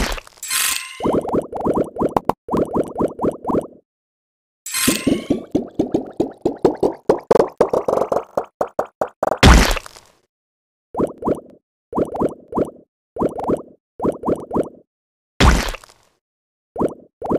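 Bright game chimes pop in quick rising runs.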